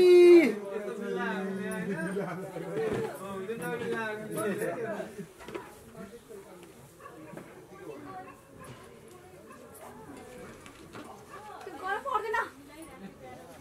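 A middle-aged woman speaks softly nearby.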